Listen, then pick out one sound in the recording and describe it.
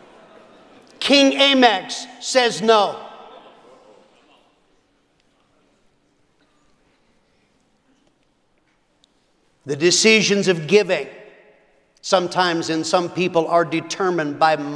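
A middle-aged man speaks with animation into a microphone in a large hall.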